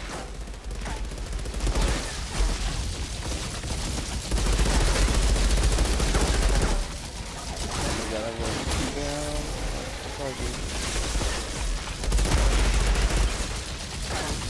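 Guns fire in rapid bursts with loud explosions.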